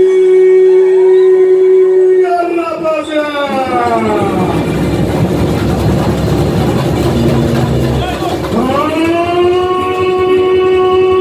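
A man sings a long held note through loudspeakers, sliding down and then back up.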